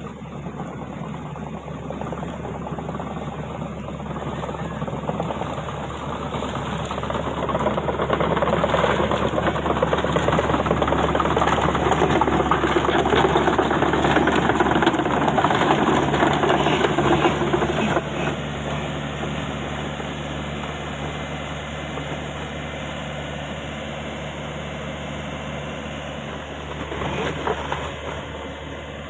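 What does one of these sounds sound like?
A diesel excavator engine runs.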